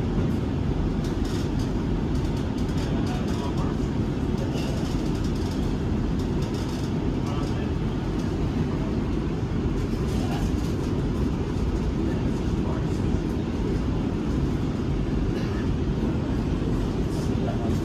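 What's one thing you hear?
Train wheels click and rattle over the rails.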